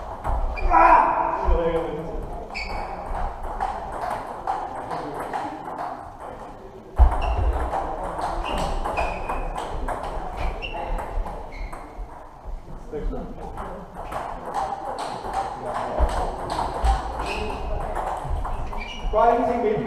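Table tennis balls click rapidly against paddles and tables in a large echoing hall.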